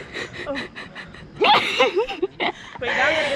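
A young woman talks cheerfully through a phone speaker.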